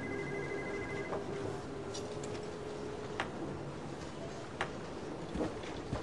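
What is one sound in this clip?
A man speaks quietly into a phone.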